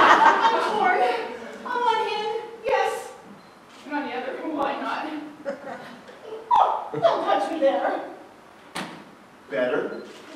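A woman speaks at a distance in a large echoing hall.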